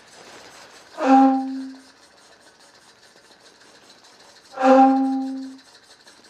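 A bamboo flute plays short, breathy notes up close.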